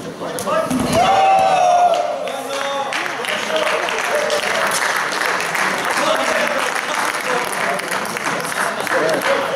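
Spectators cheer and clap loudly.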